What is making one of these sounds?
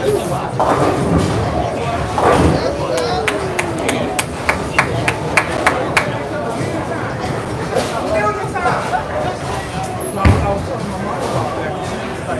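A bowling ball rumbles down a lane.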